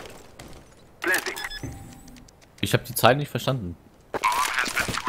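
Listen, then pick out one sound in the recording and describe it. A keypad beeps as buttons are pressed.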